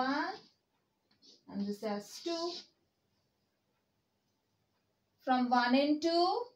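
A young woman speaks clearly and explains in short phrases, close by.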